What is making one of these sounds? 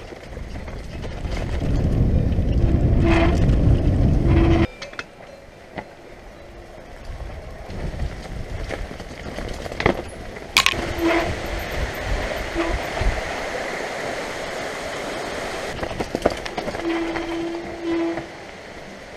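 Mountain bike tyres roll over a dirt trail.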